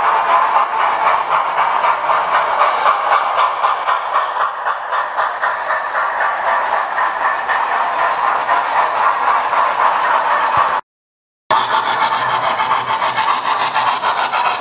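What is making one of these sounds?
A model train clatters along the tracks with a quick, steady rhythmic clicking.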